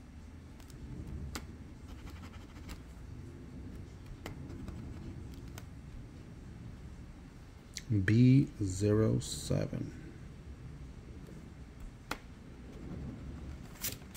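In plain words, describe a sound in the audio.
A coin scratches a card with a soft rasp.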